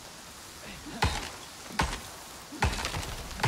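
An axe chops into wood with sharp thuds.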